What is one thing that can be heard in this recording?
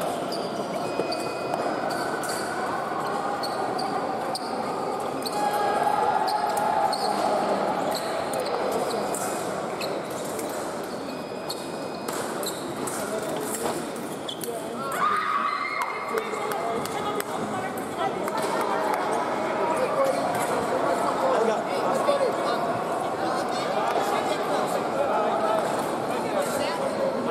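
Many voices murmur and chatter in a large echoing hall.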